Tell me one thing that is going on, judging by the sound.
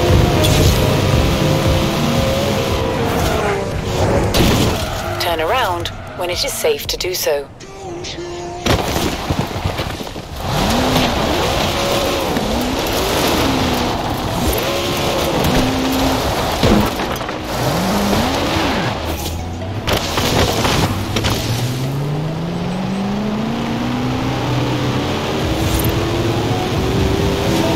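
A powerful car engine roars and revs up and down at high speed.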